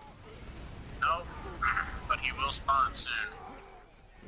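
A rifle fires several loud shots.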